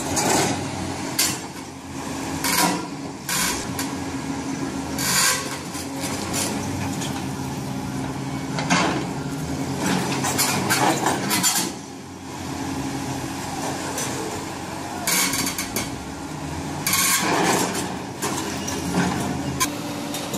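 A large excavator engine rumbles steadily.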